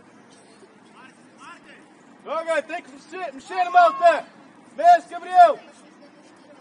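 Young men shout to each other across an open field, some way off.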